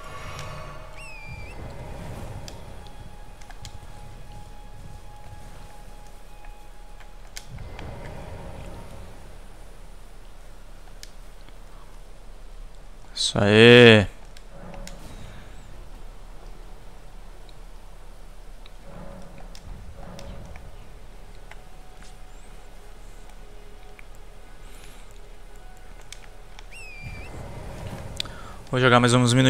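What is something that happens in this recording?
A man talks quietly close to a microphone.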